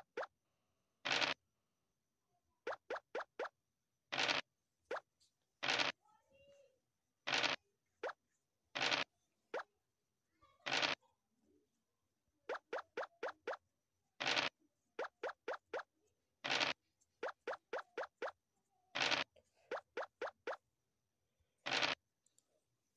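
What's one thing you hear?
Dice rattle as they roll, over and over.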